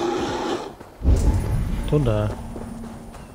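A deep magical whoosh booms and rings out.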